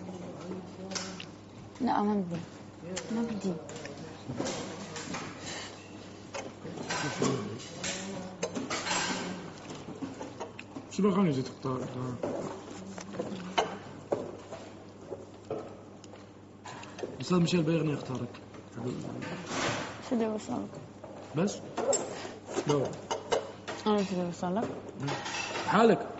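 Young men and women talk casually nearby.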